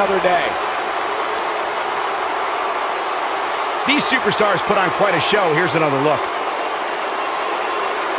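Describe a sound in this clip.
A large crowd cheers and roars steadily in an echoing arena.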